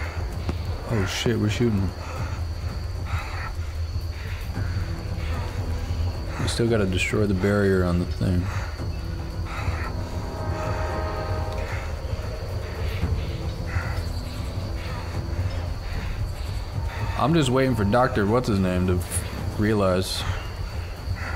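A man speaks into a headset microphone, close up.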